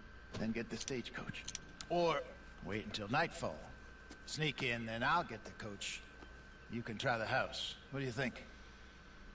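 An older man speaks calmly in a gravelly voice.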